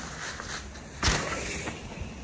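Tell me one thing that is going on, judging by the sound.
A mountain bike lands with a thud after a jump.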